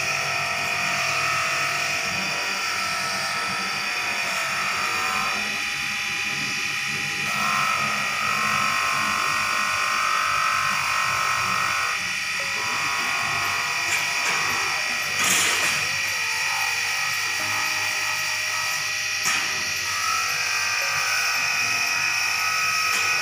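A bench polishing wheel whirs steadily.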